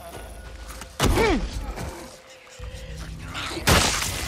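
A heavy club strikes a body with a thud.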